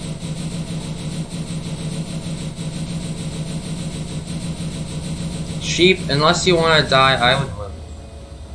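A train engine hums steadily as it rolls along the rails.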